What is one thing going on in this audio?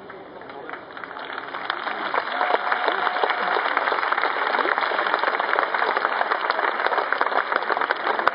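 A large crowd applauds and claps steadily outdoors.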